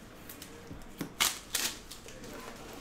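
Plastic wrapping crinkles and snaps as it is torn open.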